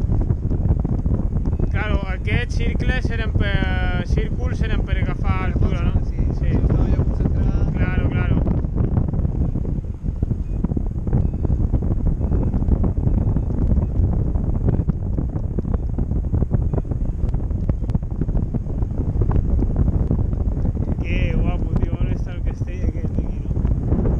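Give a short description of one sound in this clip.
Strong wind roars loudly against a microphone.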